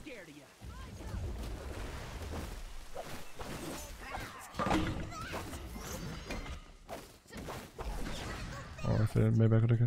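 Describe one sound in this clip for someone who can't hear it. Game effects whoosh and clash with spells and hits.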